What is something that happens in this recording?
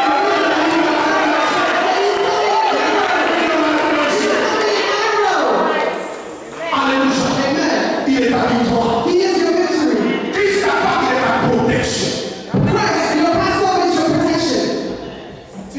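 A middle-aged man sings loudly through a microphone in an echoing hall.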